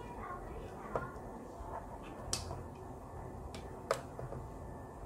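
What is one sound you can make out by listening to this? Plastic plugs click into sockets.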